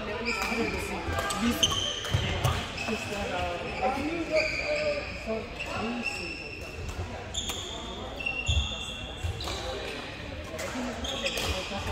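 Men talk and call out in the background.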